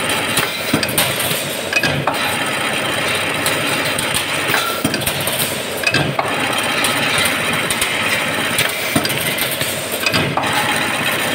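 A metal press thuds and clanks in a regular rhythm.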